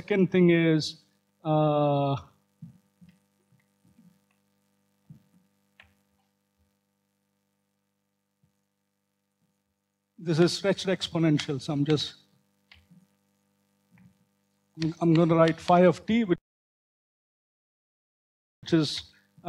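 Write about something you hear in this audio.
A man lectures through a microphone in a calm voice, pausing now and then.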